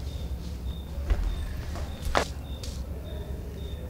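Clothing rustles as it is pulled off.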